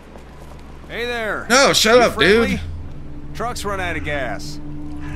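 A man shouts loudly, calling out.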